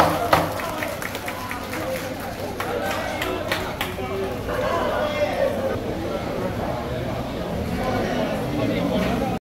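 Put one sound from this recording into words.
A crowd of people chatters nearby.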